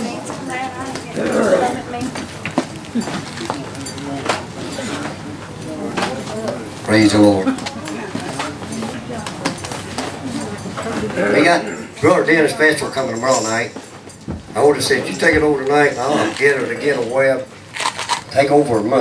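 A man speaks through a microphone and loudspeakers in an echoing hall.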